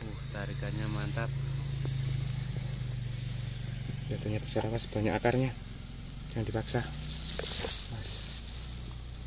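Hands rustle through dry grass stalks.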